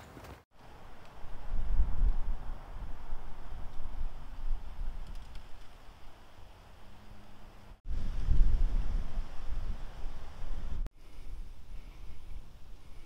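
Wind buffets and rumbles outdoors in gusts.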